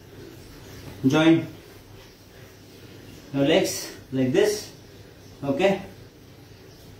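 A man speaks calmly and close by, in short phrases.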